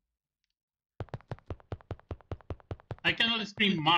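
Quick footsteps thud up wooden stairs.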